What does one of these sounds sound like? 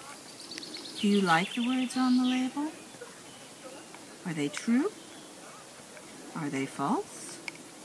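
A woman reads aloud slowly and expressively, close by.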